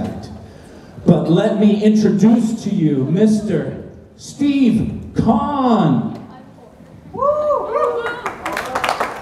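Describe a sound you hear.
A man sings loudly and with animation through a microphone and loudspeaker.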